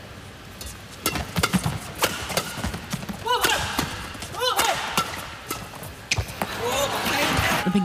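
Rackets smack a shuttlecock back and forth in a quick rally.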